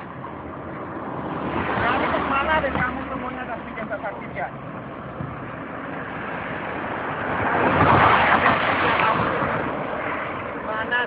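Cars drive past close by on a road, rising and fading.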